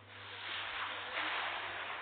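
A fireball bursts with a whoosh.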